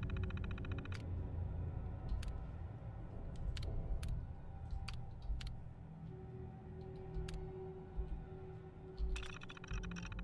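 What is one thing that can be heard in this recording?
Sharp clicks sound from a computer terminal as menu options are selected.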